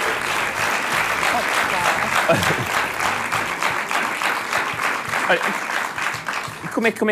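An audience claps loudly and steadily.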